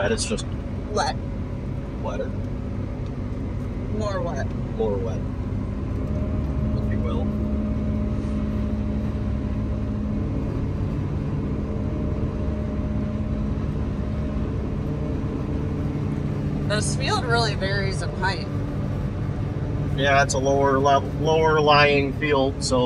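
A harvester engine drones steadily from inside the cab.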